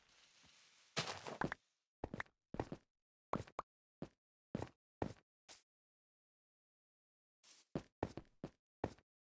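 Blocks thud sharply into place, one at a time.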